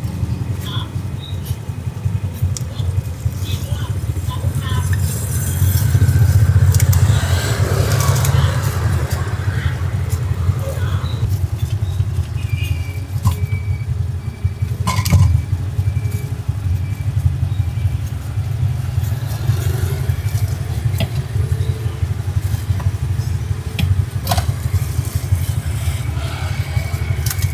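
Motorbike engines idle steadily close by.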